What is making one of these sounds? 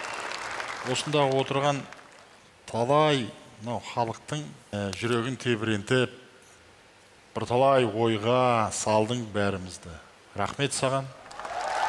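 A middle-aged man speaks calmly and warmly through a microphone.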